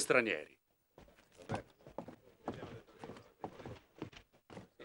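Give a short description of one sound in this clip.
Boots crunch on dirt as men walk.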